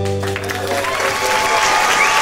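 A small band plays a song to its final chord.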